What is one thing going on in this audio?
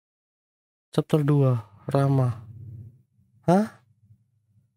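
A young man talks into a microphone close by, with animation.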